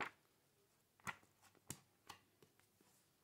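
A book is set down on a table with a soft tap.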